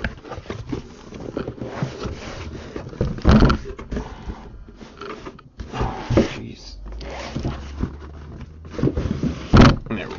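Cardboard flaps scrape and rustle as a box is handled.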